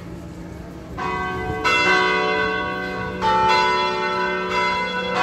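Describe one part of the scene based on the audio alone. Large church bells ring loudly and keep ringing out.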